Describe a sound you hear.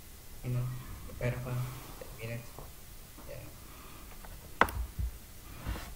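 A young man speaks quietly through a computer.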